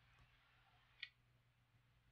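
A game stone clicks onto a wooden board.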